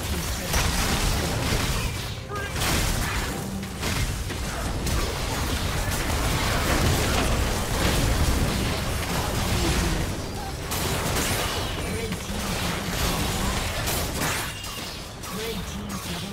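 Video game combat effects blast, zap and clash rapidly.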